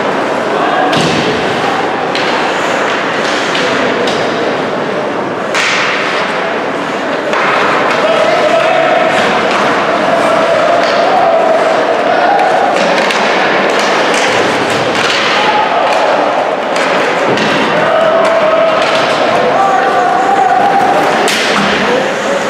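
Hockey sticks and pucks clack and bang against the boards.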